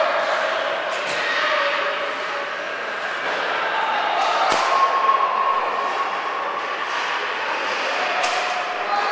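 A hockey stick strikes a puck with a sharp crack.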